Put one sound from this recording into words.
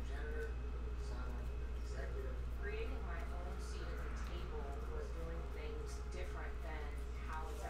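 Trading cards flick and rustle as they are shuffled.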